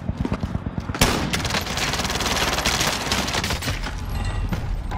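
Gunshots fire in rapid bursts, close by.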